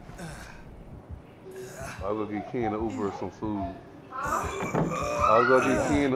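Wooden boards creak and knock as a heavy wooden plank is lifted upright.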